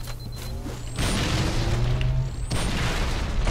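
Electricity crackles and zaps loudly nearby.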